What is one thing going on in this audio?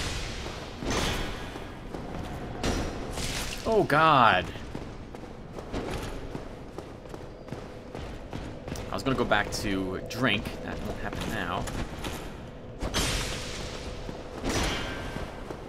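Metal weapons clash with sharp clangs.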